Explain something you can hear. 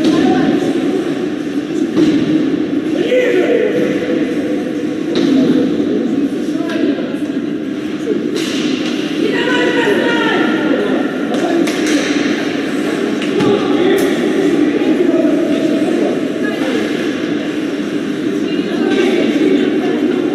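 A crowd of spectators chatters and cheers in a large echoing arena.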